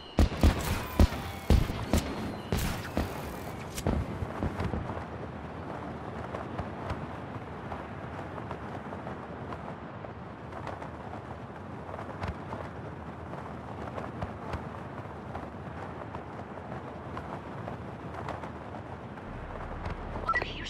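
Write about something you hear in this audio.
Wind rushes steadily past a falling wingsuit flyer.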